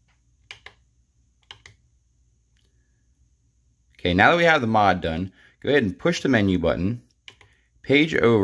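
Plastic buttons click softly under a finger.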